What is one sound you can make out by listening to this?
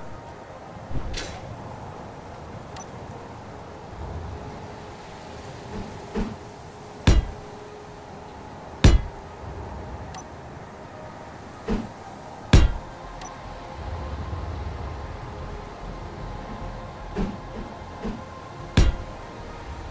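Sharp game clicks ring out as blocks are placed one after another.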